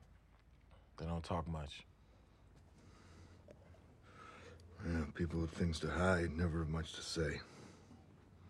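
A man speaks in a low, relaxed voice.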